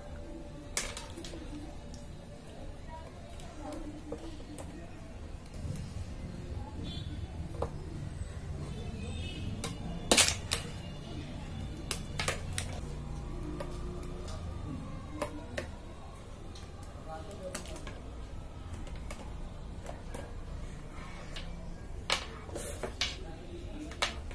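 Small plastic parts click and tap on a hard surface.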